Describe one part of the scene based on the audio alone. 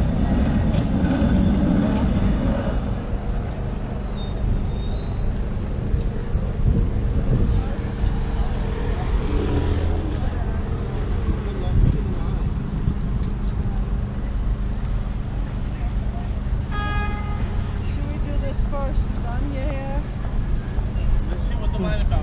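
Wind blows against the microphone outdoors.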